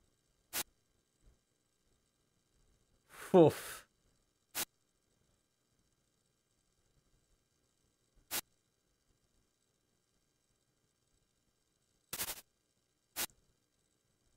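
Short electronic blips sound as dialogue text advances.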